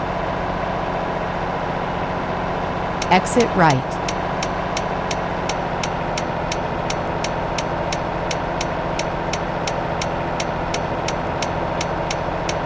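A diesel truck engine drones at cruising speed in a video game.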